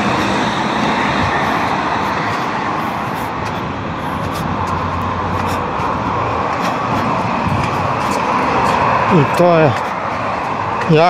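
Wind blusters against the microphone outdoors.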